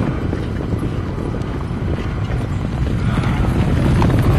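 Horses gallop across the ground in a loud rumble of hooves.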